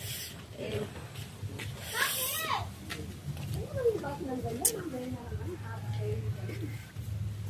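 A young woman talks and giggles close by.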